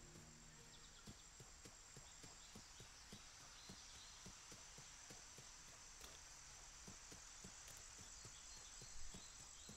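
Footsteps run quickly and steadily over grass.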